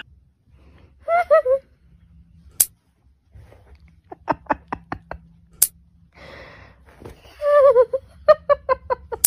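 A baby babbles softly.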